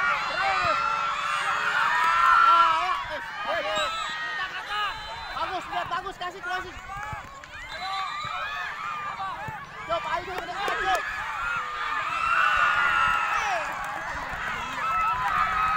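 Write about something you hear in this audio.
Young boys shout to each other outdoors.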